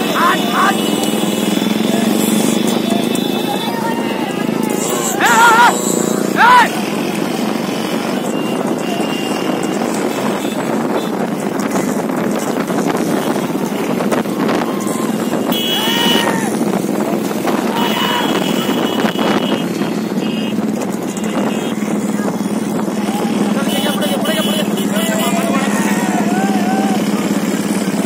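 Men shout and call out with excitement nearby.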